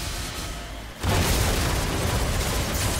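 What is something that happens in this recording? A truck crashes with a loud thud and crunch.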